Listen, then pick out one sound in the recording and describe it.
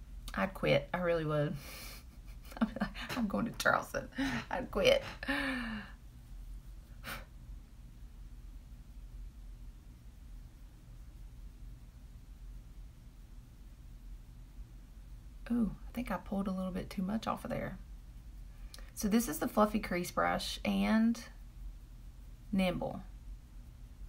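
A middle-aged woman talks calmly and close by, pausing now and then.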